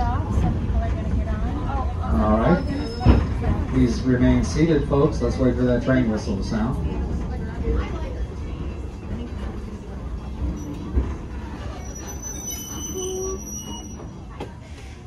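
An open wagon rumbles and rattles along steadily.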